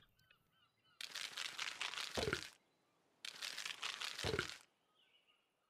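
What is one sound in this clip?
Food is munched with quick chewing crunches.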